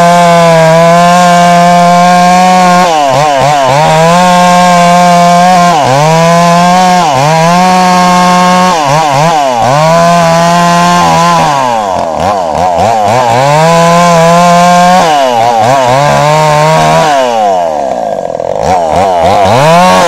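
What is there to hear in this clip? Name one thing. A chainsaw engine roars loudly close by, revving up and down as it cuts through a log.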